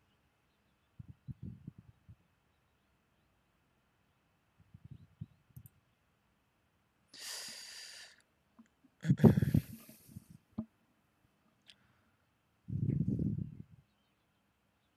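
A young woman speaks quietly into a microphone in short bursts.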